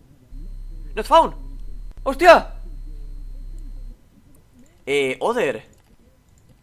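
A young man exclaims loudly and with animation close to a microphone.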